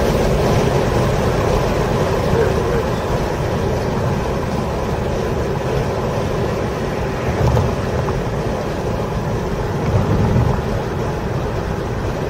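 Tyres rumble on the track surface.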